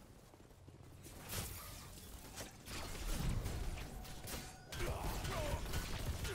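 Swords clash in fights between game warriors.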